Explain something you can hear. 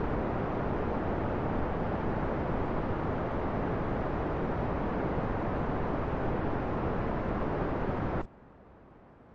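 Rocket engines roar loudly and steadily, then cut off suddenly.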